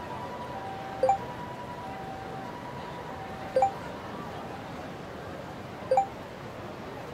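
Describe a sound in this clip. A short message notification chime sounds several times.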